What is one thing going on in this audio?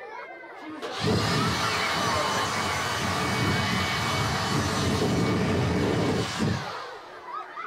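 A handheld blower roars loudly, then cuts off.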